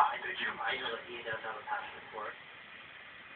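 A man speaks calmly, heard through a television loudspeaker.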